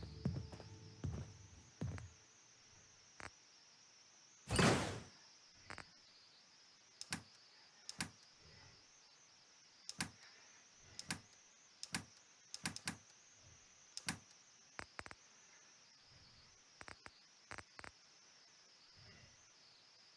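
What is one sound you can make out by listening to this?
Short soft clicks tick now and then.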